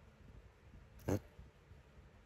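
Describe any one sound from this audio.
A middle-aged man chuckles briefly close by.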